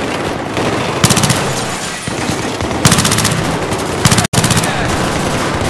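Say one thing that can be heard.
A rifle fires in rapid bursts up close.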